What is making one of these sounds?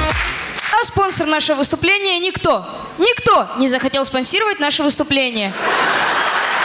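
A boy sings into a microphone in a large hall.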